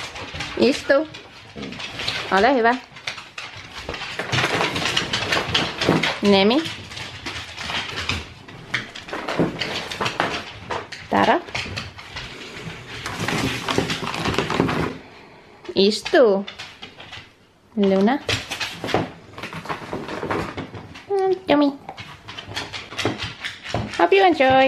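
Dogs whine and yelp in high, rising and falling cries.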